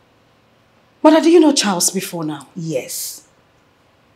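An older woman speaks in a displeased tone, close by.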